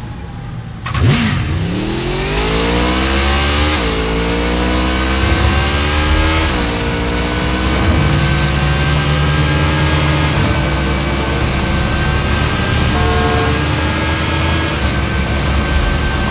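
A motorcycle engine starts with a roar and revs up, rising in pitch as it speeds along.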